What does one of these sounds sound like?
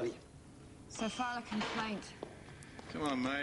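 A woman speaks tensely nearby.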